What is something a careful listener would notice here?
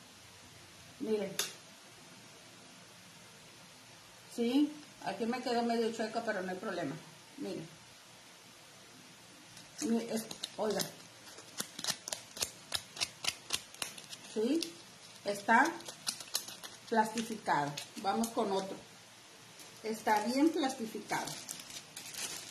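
A middle-aged woman speaks calmly, close by, in short bursts.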